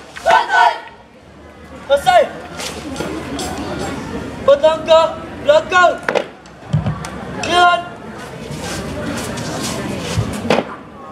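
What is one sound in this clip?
Young people shout commands in unison outdoors.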